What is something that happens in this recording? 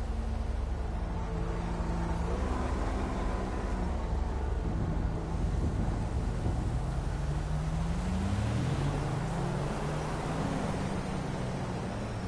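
Car engines hum and rev as cars drive past on a street.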